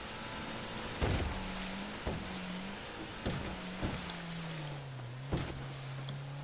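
A boat hull slaps hard against waves.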